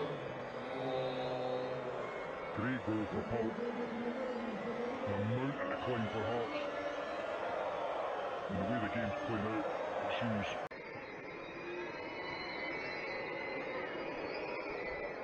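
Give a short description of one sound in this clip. A large stadium crowd roars and chants loudly.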